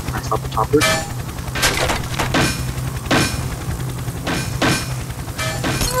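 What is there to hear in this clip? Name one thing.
A helicopter crashes and clatters against wooden furniture.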